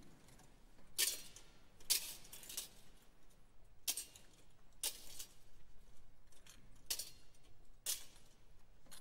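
Metal censer chains clink as a censer swings.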